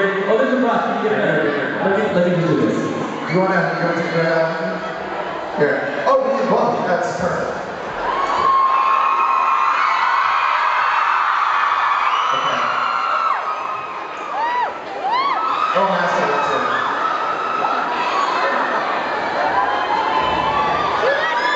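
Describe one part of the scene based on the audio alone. Drums and cymbals are struck hard.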